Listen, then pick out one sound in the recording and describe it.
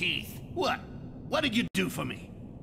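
A man answers in a rasping, sneering voice.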